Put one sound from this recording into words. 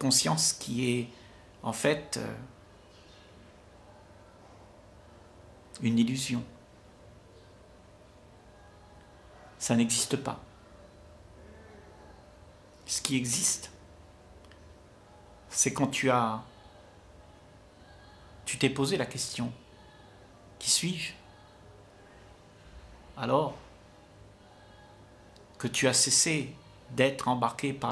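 An elderly man speaks calmly through a microphone, in short phrases with long pauses.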